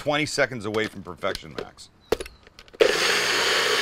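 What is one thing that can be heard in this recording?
A cup clicks onto a blender base.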